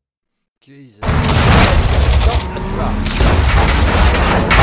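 Gunfire bursts rapidly.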